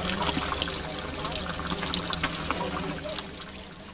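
Water splashes into a plastic bottle as it fills.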